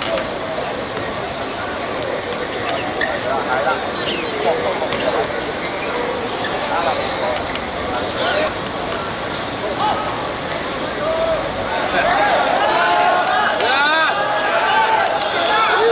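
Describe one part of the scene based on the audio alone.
Young men shout to each other across an open pitch.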